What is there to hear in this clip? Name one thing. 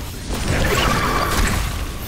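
A fiery blast bursts with a whoosh.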